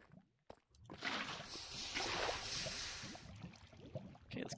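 Lava bubbles and hisses as a bucket scoops it up.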